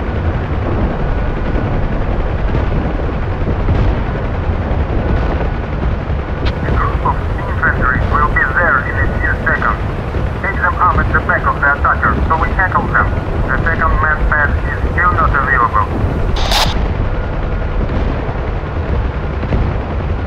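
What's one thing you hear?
Rain patters on a helicopter windscreen.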